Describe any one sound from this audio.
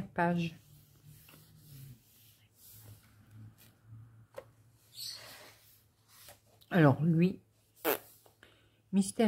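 Hands brush softly across paper.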